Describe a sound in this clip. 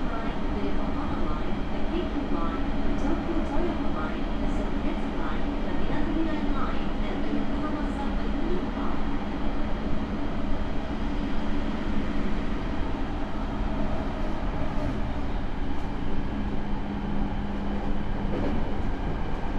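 A train's motor hums with a steady drone.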